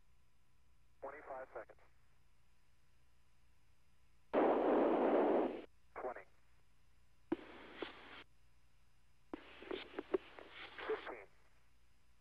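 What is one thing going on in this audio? A man speaks calmly over a crackly radio link.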